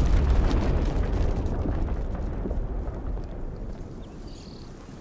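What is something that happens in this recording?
A deep rumble of an explosion rolls out and slowly fades.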